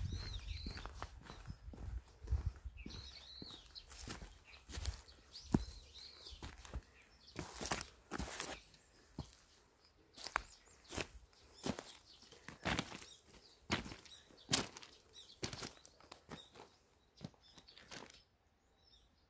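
Footsteps crunch over dry leaves and gravel at a steady walking pace.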